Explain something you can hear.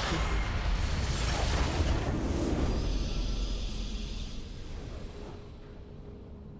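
A game's base explodes with a loud crashing blast that fades away.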